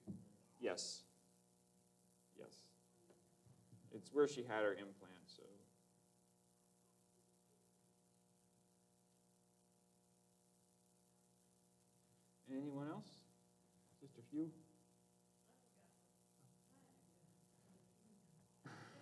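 A man speaks slowly and calmly through a microphone, with pauses, in a large echoing hall.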